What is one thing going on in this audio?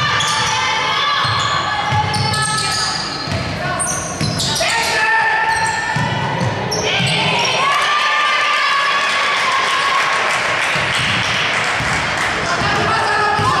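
A basketball thuds as it is dribbled on the court.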